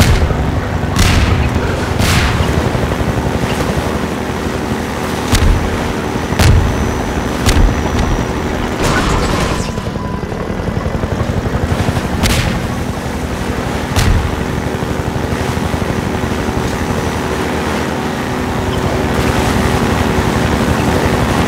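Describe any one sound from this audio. A boat engine roars steadily at close range.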